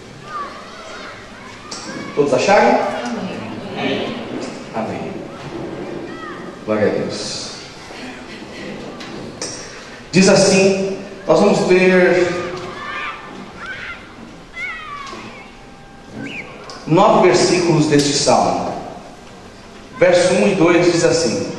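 A man speaks with animation through a microphone and loudspeakers in an echoing room.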